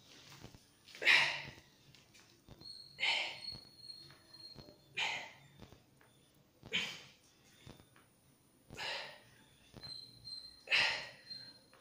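A young man exhales sharply and rhythmically, close by, with each push-up.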